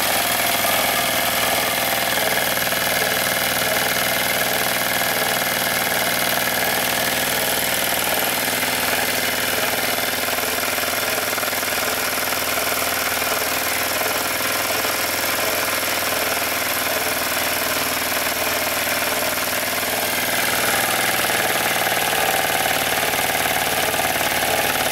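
A small steam engine runs with a fast, steady chuffing and hiss.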